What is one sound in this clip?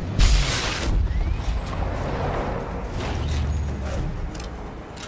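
A rifle shot booms and echoes through a large hall.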